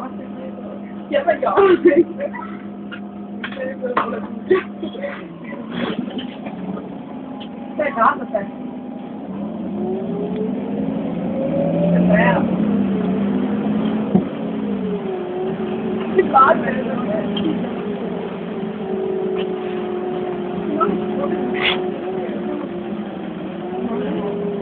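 A bus engine idles, then revs up and drones as the bus pulls away.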